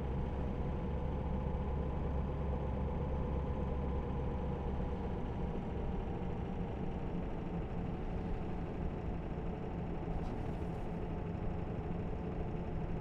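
A truck engine hums steadily with a low drone.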